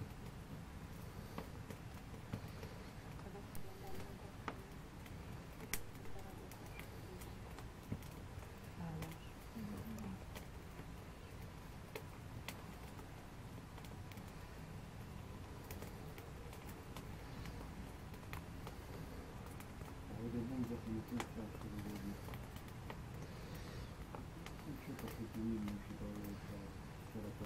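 A fire crackles and pops.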